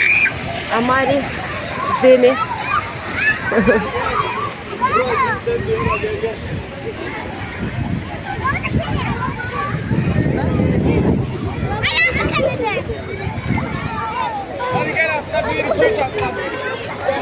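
Children shout and squeal playfully outdoors.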